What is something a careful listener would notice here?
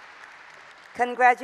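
A woman speaks warmly into a microphone, heard through loudspeakers in a large hall.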